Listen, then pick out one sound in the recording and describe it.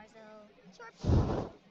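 Flames burst up with a loud whoosh.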